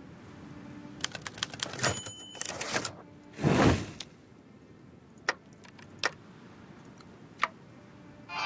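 Short interface clicks sound.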